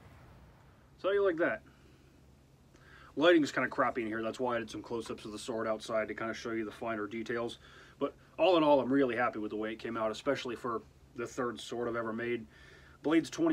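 A man talks calmly and with animation close to a microphone.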